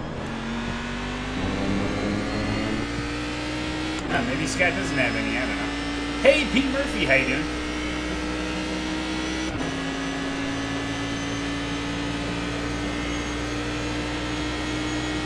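A racing car engine drones steadily, its pitch shifting with the gears.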